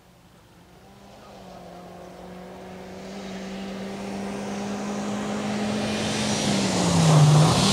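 A rally car engine revs loudly as it approaches down a road.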